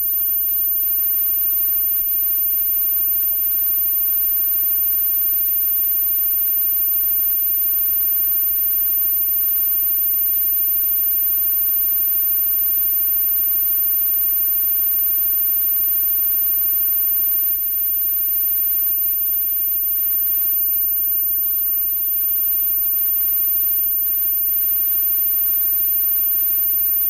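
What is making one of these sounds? A rock band plays loud, distorted music.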